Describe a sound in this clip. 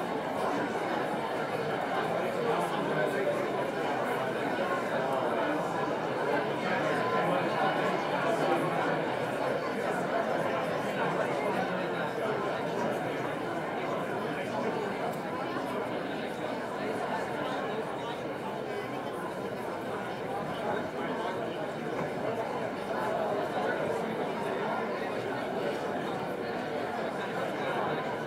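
A crowd of men and women chatter in a large echoing hall.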